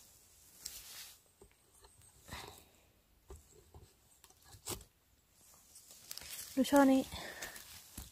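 Scissors snip mushroom stems.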